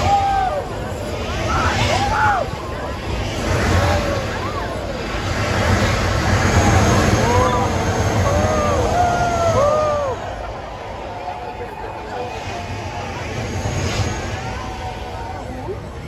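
A gas flame bursts from a tower with a deep roaring whoosh.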